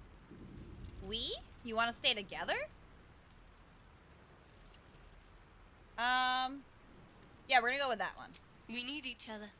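A young woman speaks animatedly into a microphone.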